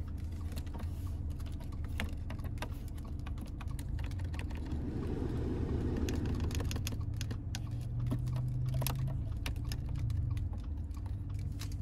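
Plastic buttons click softly as they are pressed.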